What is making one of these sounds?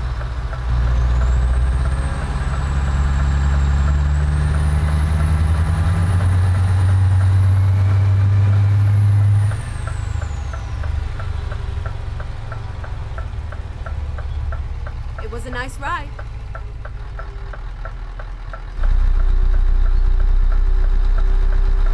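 A truck engine drones steadily, rising and falling with the throttle.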